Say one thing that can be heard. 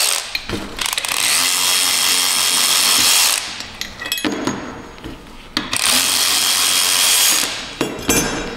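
A pneumatic power tool whirs loudly in short bursts.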